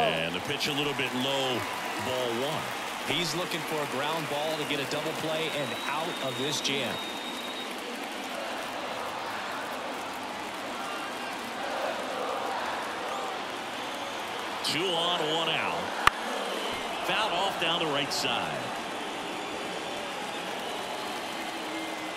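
A large crowd murmurs steadily in the stands.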